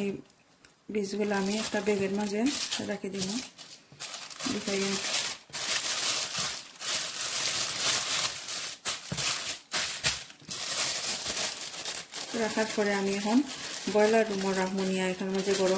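A plastic bag crinkles and rustles loudly as it is handled.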